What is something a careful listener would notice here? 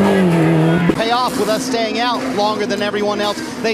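Race car engines whine at high speed.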